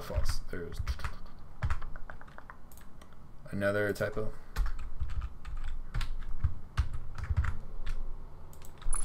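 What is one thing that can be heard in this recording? A young man talks calmly and closely into a microphone.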